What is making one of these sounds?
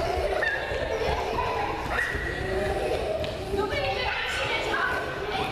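Children's feet patter and thump across a wooden floor in an echoing hall.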